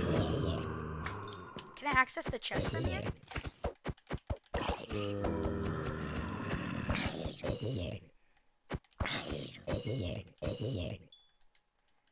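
Zombies groan and moan over and over.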